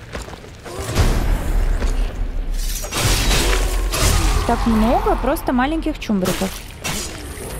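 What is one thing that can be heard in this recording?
Axe blows land with heavy thuds in a fight.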